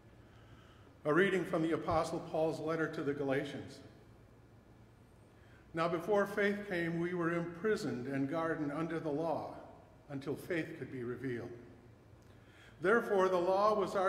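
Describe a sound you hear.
An elderly man reads aloud calmly through a microphone.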